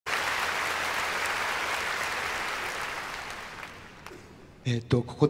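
A large audience applauds in a big hall, then the applause fades.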